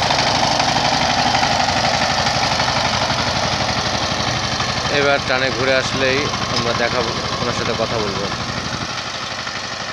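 A small diesel engine chugs steadily close by, slowly fading as it moves away.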